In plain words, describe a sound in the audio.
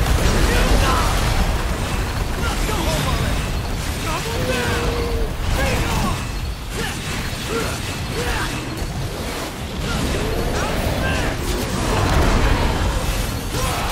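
Fiery explosions boom.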